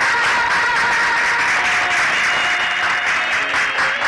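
A crowd claps steadily and loudly.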